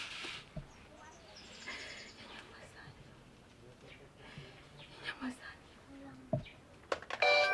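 A young woman sobs and moans quietly.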